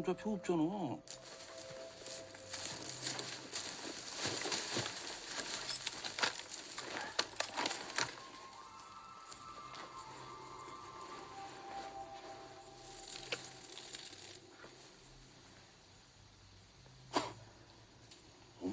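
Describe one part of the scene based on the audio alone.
Reeds rustle as people push through them.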